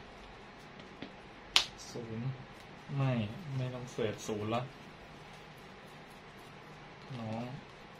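A deck of playing cards is shuffled by hand.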